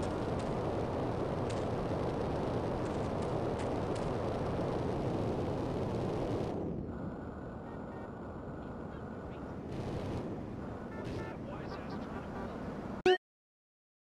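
A jetpack roars with a rushing hiss.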